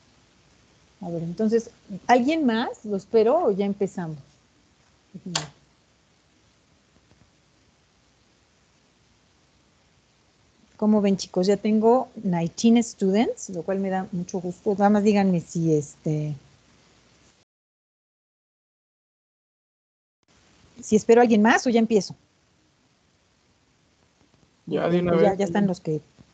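A woman speaks calmly over an online call, in short bursts.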